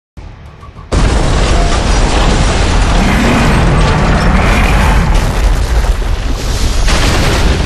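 A huge explosion roars with a deep, rumbling blast.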